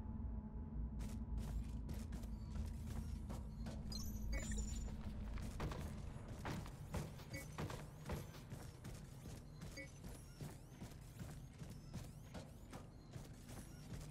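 Heavy metallic footsteps clank on a hard floor.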